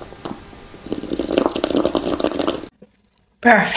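A young man slurps loudly through a straw.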